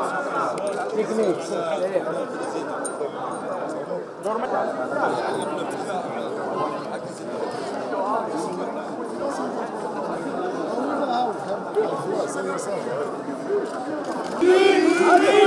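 A crowd of men chatters in a loud murmur outdoors.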